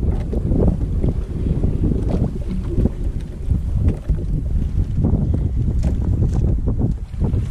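A fishing line rustles as it is pulled in by hand.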